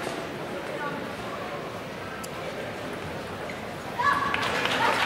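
A table tennis ball clicks against paddles and the table in a quick rally.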